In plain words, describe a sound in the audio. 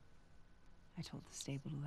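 A woman speaks firmly.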